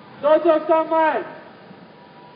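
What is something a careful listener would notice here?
A man calls out loudly close by.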